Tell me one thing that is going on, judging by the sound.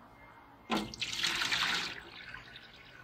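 Water pours from a jar and splashes onto metal.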